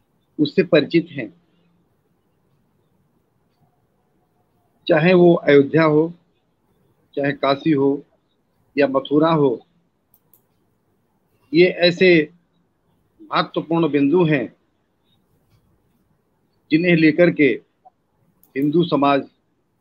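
An older man speaks calmly in short phrases with pauses, heard through an online call.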